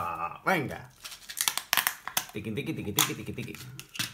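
Small screws rattle in a plastic container.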